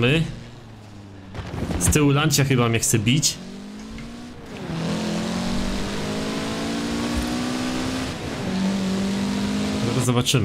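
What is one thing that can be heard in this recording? A car engine revs high and changes pitch as gears shift.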